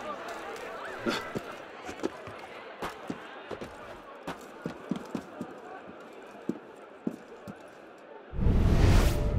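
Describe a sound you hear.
Footsteps tap on a roof.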